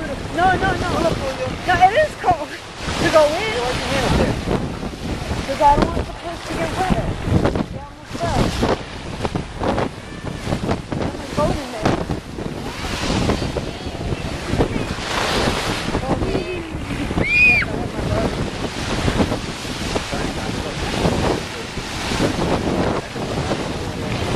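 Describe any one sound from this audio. Small waves break and wash onto the shore.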